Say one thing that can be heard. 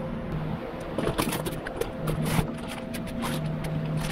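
A cardboard box flap rustles open.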